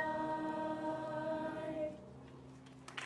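A choir of young women sings through microphones.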